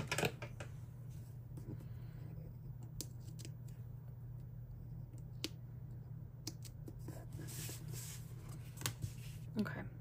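A sticker peels off a backing sheet with a soft tearing sound.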